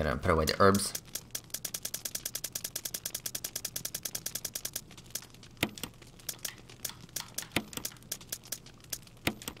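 Short electronic blips tick rapidly as a menu list scrolls.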